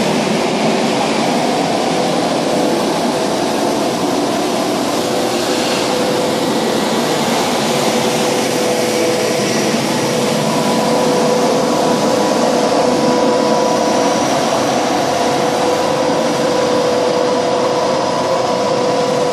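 A heavy truck engine rumbles close by.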